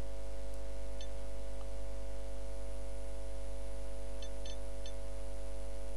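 Short soft blips sound as menu items are pointed at.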